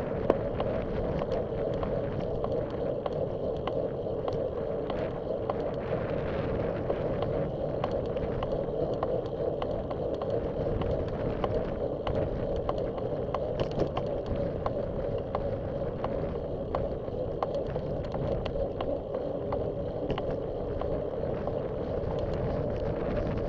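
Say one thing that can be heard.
Bicycle tyres hum along a paved path.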